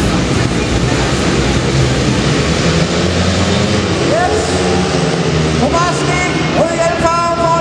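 Several motorcycle engines roar loudly and rev up as the bikes speed off.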